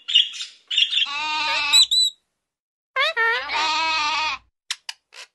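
A young goat bleats loudly nearby.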